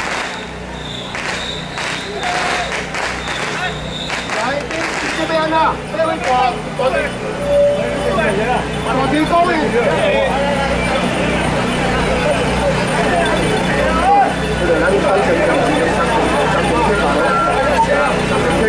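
A dense crowd of men talk and call out all around, close by.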